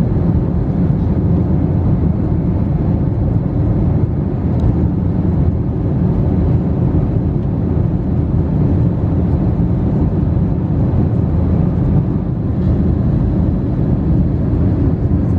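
Jet engines roar with a steady, deep rumble inside an airliner cabin.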